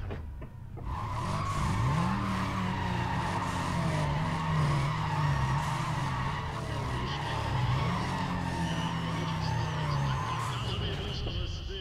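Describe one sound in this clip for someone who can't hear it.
A car engine revs hard as tyres spin and screech in place.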